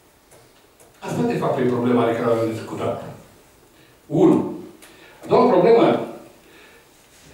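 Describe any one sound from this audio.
An older man speaks calmly into a microphone, heard through a loudspeaker in a room.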